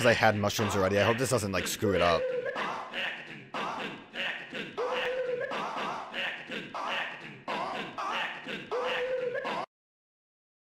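Flying creatures give out short warbling cries in repeated bursts.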